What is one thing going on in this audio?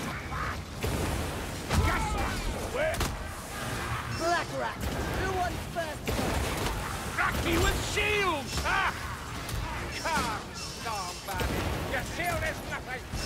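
Creatures screech and growl.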